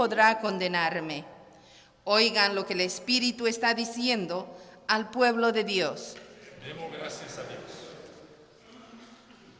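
A man sings through a microphone, echoing in a large hall.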